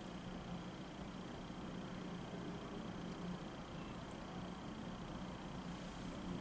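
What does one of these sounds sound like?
A small brush strokes softly across a fingernail.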